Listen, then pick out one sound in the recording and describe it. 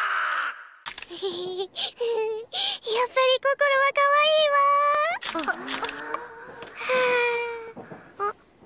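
A young girl squeals and speaks excitedly in a high voice.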